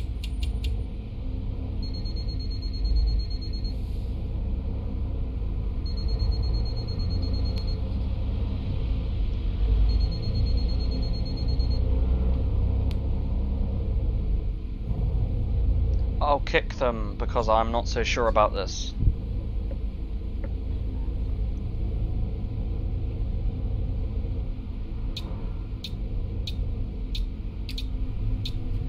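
A bus engine hums low and steady as the bus drives.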